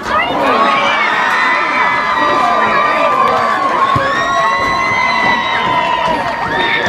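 Young women shout and cheer excitedly outdoors.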